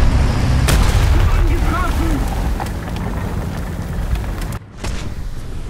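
A vehicle burns with a roaring, crackling fire.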